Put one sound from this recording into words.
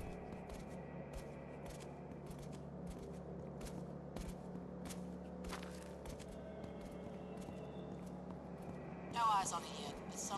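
Footsteps tread steadily on pavement.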